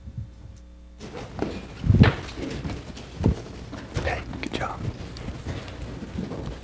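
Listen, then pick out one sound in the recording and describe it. A few adults talk quietly nearby.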